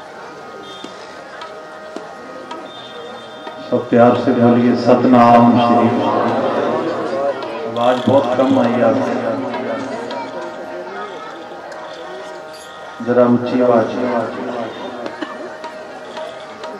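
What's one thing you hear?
Tabla drums are played.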